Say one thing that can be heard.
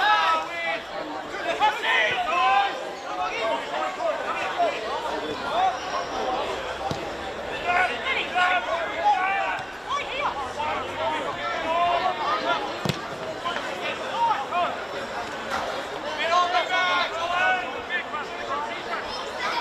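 Young men shout to each other outdoors across an open pitch.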